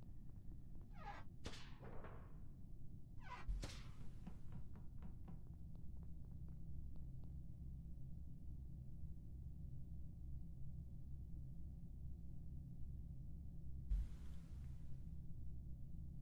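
Short whooshing game sound effects play a few times.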